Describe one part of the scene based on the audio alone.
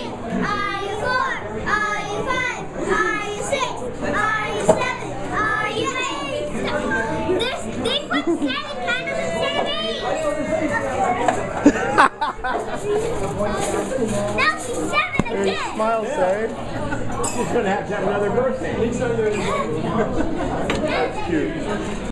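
A group of people talk loudly nearby.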